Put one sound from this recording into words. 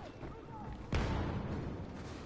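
A blaster gun fires sharp laser shots.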